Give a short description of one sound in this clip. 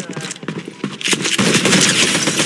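A shotgun blasts loudly.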